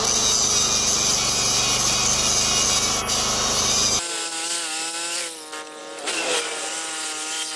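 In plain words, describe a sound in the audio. An angle grinder whines loudly as it cuts metal.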